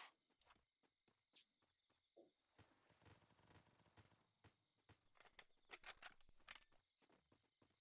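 Footsteps thud quickly on hollow wooden planks.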